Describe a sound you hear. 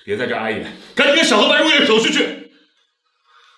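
A middle-aged man speaks sternly, close by.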